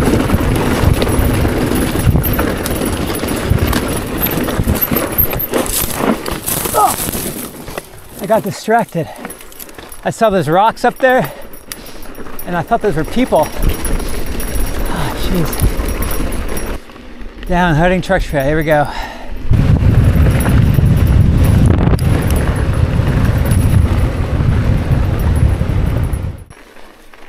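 Bicycle tyres rumble and rattle over a rough dirt trail.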